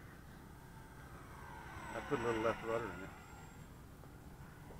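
A small model airplane engine buzzes overhead and fades away.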